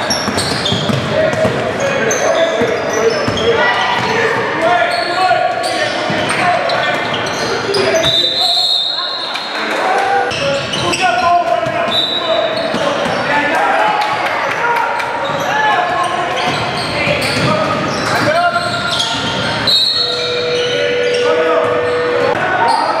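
Young players shout and call out to each other across the echoing gym.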